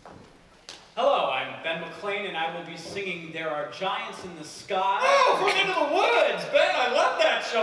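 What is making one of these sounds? A young man speaks with animation, his voice carrying through a hall.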